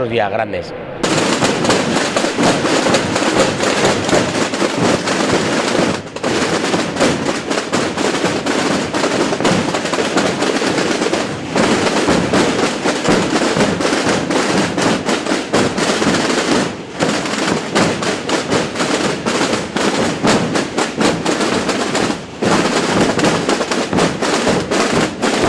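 Many drums beat together in a steady marching rhythm.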